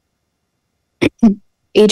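A man speaks briefly through a microphone over an online call.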